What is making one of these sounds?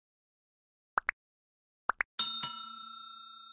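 Short clicks sound.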